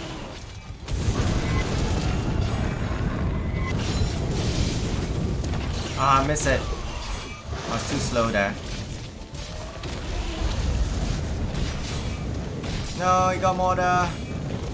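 Fiery explosions boom and rumble.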